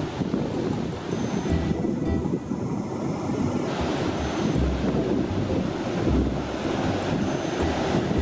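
Waves crash and roll onto a beach.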